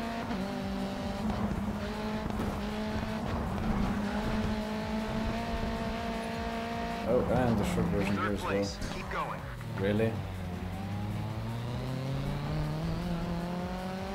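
A racing car engine roars steadily, its pitch rising and falling with the gears.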